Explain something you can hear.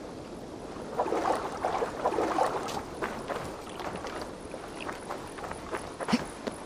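Water splashes as a person wades through it.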